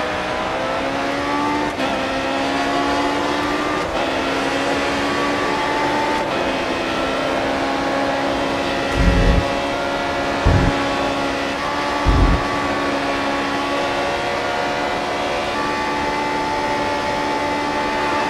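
A racing car engine screams at high revs, rising in pitch through the gears.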